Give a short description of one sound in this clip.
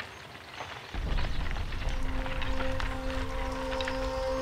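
Horse hooves clop on a dirt track.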